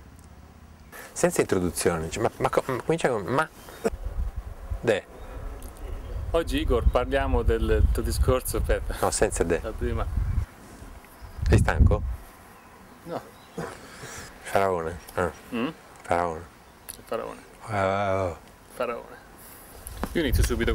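A middle-aged man speaks calmly, heard close through a microphone.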